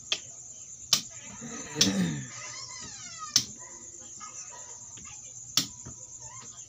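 Plastic game pieces click and tap onto a wooden board.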